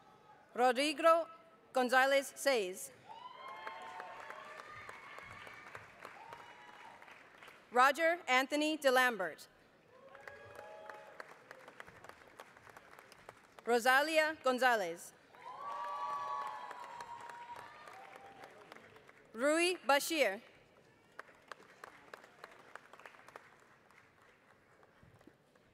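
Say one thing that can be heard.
A large crowd applauds steadily in a big echoing hall.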